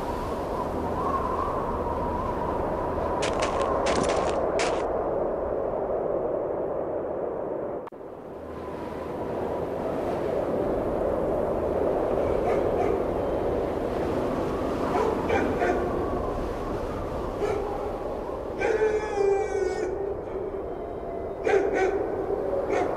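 Footsteps crunch steadily through deep snow.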